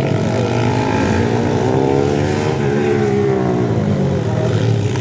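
A nearby dirt bike engine revs up and down as it passes.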